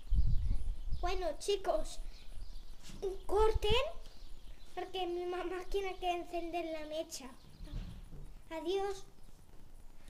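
A young boy talks with animation, close by.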